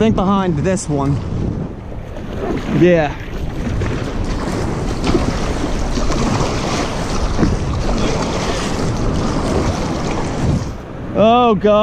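A paddle dips and splashes through water.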